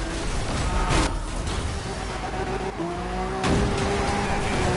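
A car slams into another with a sudden metallic crash.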